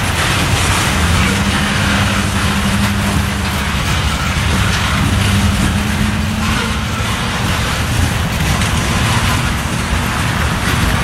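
Steel wheels squeal faintly against the rails.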